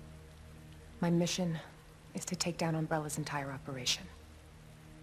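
A woman speaks calmly and quietly.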